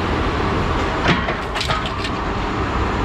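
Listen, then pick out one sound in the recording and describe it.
Scrap metal clanks and rattles.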